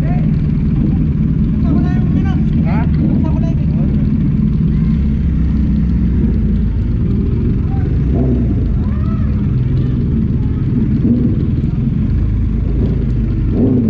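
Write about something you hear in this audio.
A motorcycle engine idles and rumbles steadily up close.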